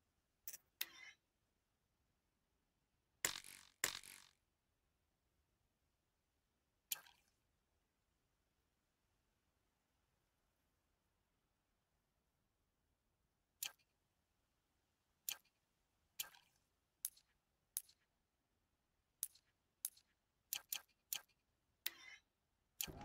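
Short soft clicks sound as menu options are selected.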